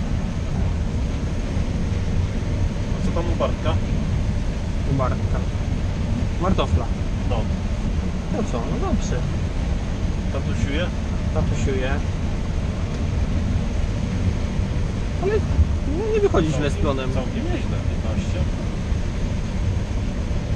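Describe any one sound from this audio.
A heavy harvester engine drones steadily from inside a cab.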